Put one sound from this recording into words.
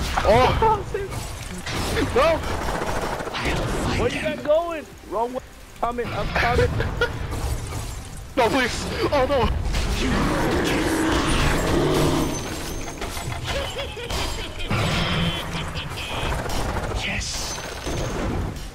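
Magic spells whoosh and crackle in a battle.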